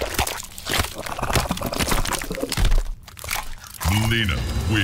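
Wet flesh squelches and bones crunch in quick, loud bursts.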